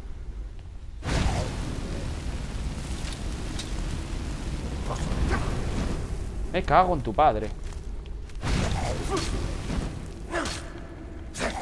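Flames roar and crackle in a steady rushing burst.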